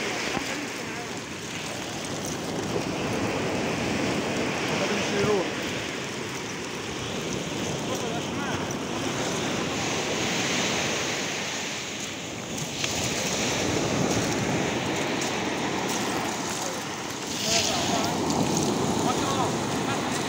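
Fish flap and rustle in a wet net.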